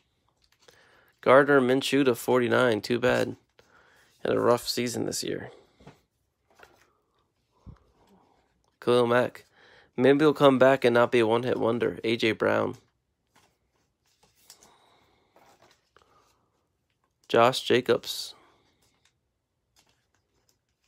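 Plastic card sleeves crinkle softly as cards are slid in and out.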